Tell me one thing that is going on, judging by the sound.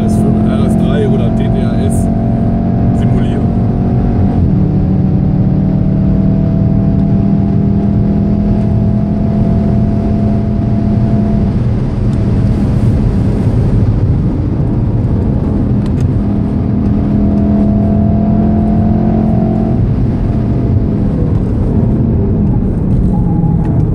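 Wind and tyre noise rush loudly around a fast-moving car.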